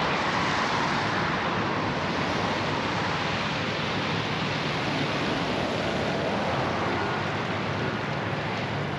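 Tyres hiss steadily on a wet road.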